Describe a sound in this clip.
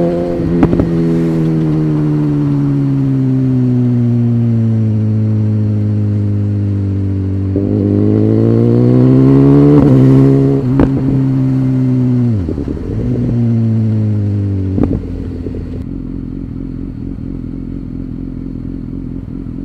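A motorcycle engine hums steadily, rising and falling in pitch as the rider shifts gears.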